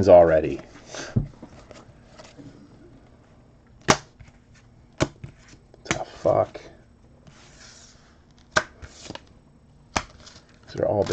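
Trading cards snap and tick as they are flipped through by hand.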